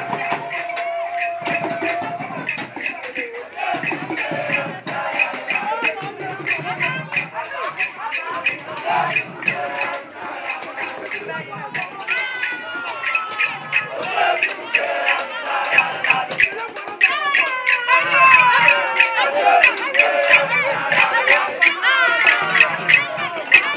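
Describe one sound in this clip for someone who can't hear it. A large crowd of men and women chatters and shouts loudly outdoors.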